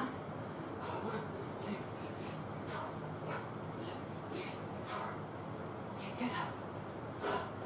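A woman exhales sharply in a steady rhythm.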